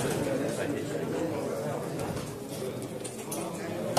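Plastic game pieces click against a board.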